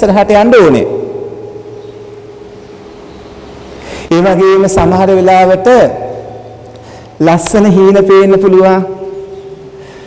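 A man chants in long, drawn-out phrases through a microphone, with a ringing echo after each phrase.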